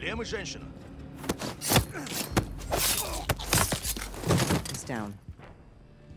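A man grunts during a struggle.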